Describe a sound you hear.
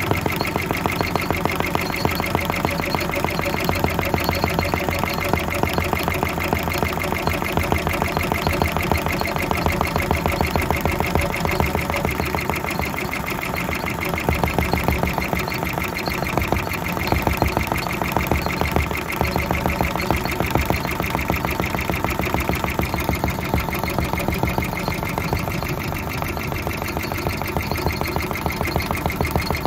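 A sewing machine needle stitches rapidly in a steady, fast rattling rhythm.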